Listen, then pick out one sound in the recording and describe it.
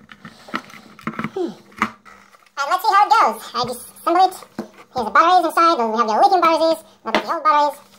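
Plastic parts click and knock as they are handled.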